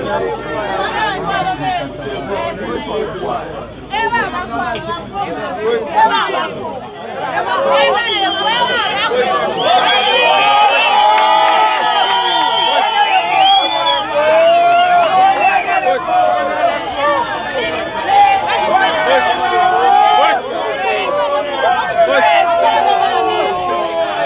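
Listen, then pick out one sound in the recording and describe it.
A crowd of men and women talk and shout over one another close by, outdoors.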